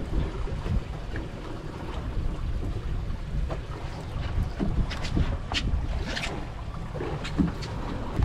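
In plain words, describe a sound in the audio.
A fishing reel clicks as a line is reeled in.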